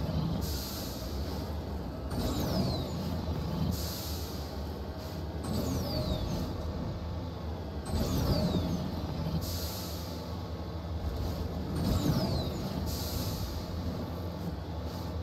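Thrusters whoosh in short bursts as a vehicle jumps.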